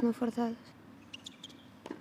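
A tennis ball is struck sharply with a racket.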